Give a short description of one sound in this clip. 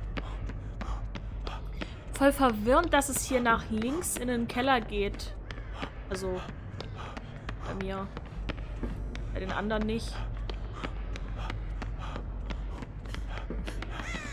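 Quick footsteps patter as a figure runs.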